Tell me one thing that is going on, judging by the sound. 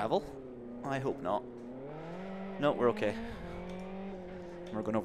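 A racing car engine drones steadily and shifts in pitch.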